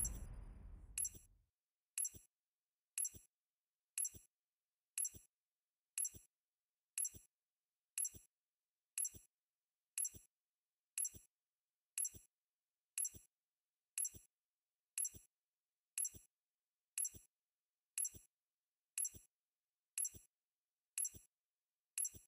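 A game's countdown ticks once every second.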